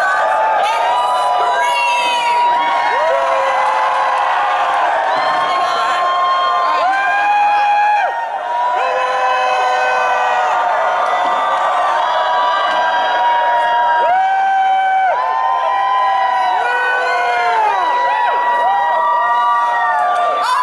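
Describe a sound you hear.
Music with a high singing voice plays loudly over loudspeakers.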